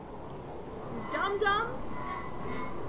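A young woman speaks briefly into a microphone.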